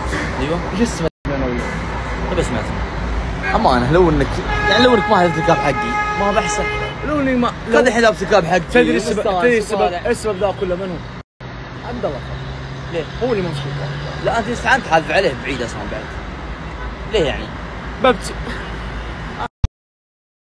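Young men talk and sing with animation close to a phone microphone.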